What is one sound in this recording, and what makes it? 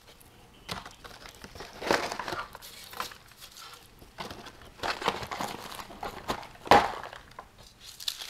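Dry crumbs patter onto a metal tray.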